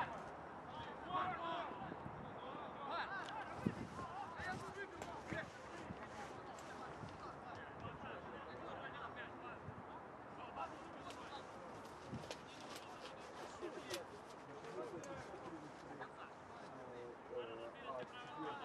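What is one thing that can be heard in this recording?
Men shout to each other from a distance across an open field.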